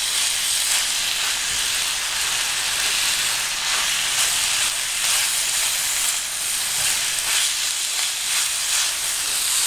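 A spatula scrapes and stirs through meat in a frying pan.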